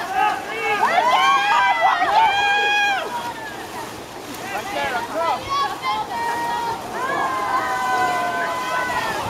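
Young women shout and call out loudly across open water.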